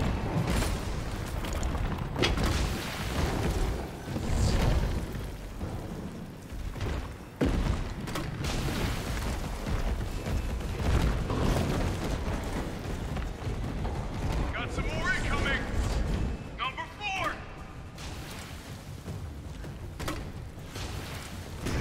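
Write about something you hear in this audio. A grenade launcher fires with loud booming blasts.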